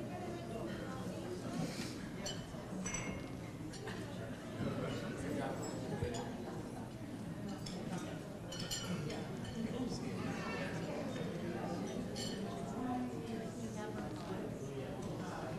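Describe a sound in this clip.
An older man speaks calmly through a microphone in a large hall.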